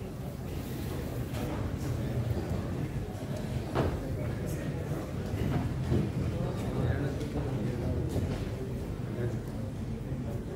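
A crowd murmurs and chatters in a busy room.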